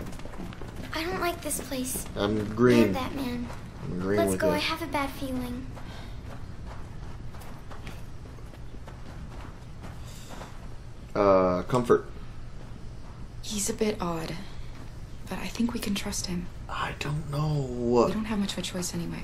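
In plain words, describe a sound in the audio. A young woman speaks softly and uneasily.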